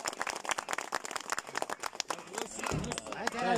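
A crowd of men claps hands rapidly outdoors.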